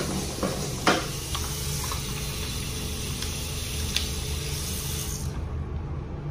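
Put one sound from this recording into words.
Water runs from a tap onto hands.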